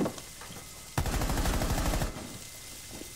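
A rifle fires a rapid burst of shots indoors.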